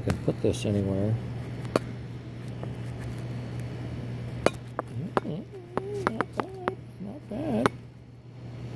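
A hand knocks and clicks against a small metal part.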